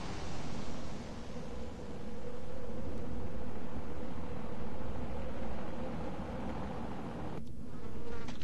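An aircraft engine roars steadily in flight.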